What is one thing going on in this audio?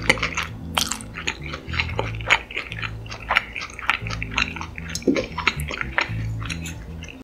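A woman chews crunchy food loudly and wetly, close to a microphone.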